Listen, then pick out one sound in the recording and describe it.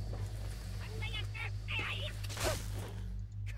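An energy weapon zaps.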